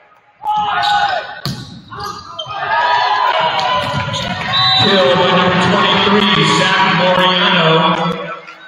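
Young men shout and call out to each other across the gym.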